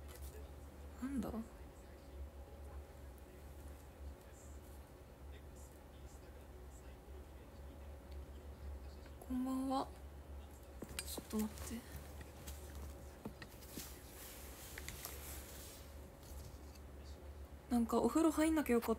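A young woman speaks briefly and softly, close to a microphone, between pauses.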